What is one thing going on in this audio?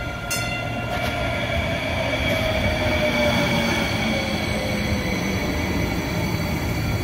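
Train brakes squeal with a falling whine.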